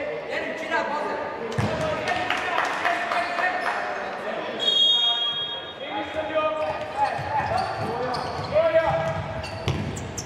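A ball is kicked across a hard court.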